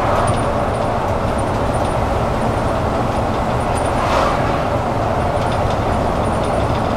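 Tyres hum steadily on an asphalt road.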